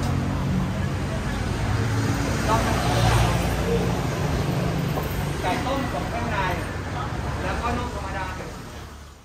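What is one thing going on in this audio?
Women and men talk and chatter nearby in a busy crowd.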